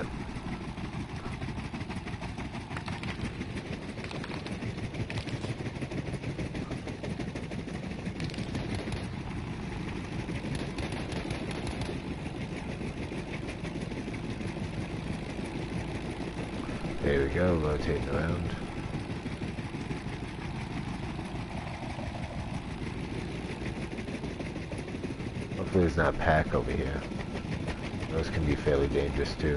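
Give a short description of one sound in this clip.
A helicopter's rotor drones and thumps steadily.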